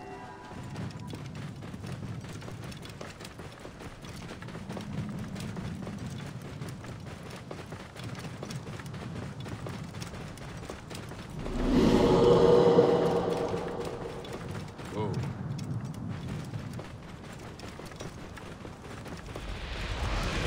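A camel's hooves pad steadily over soft sand.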